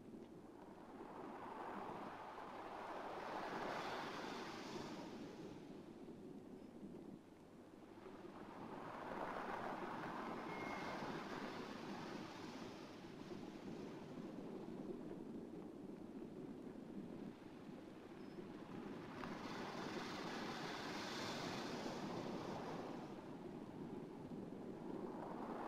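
Waves wash onto the shore in slow, rolling surges.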